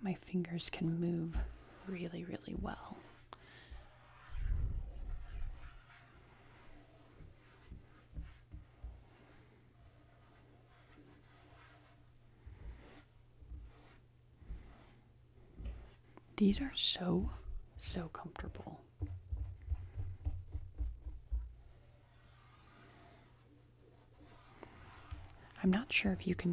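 Gloved fingertips rub and trace across a tabletop.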